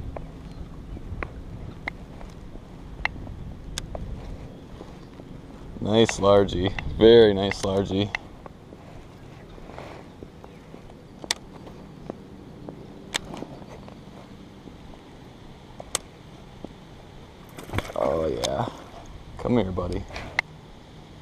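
A fishing reel clicks and whirs as a line is wound in.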